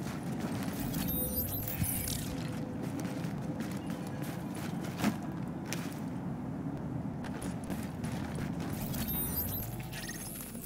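A soft whoosh sounds as a map opens.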